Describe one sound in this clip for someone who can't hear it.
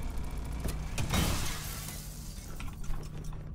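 Glass shatters and scatters.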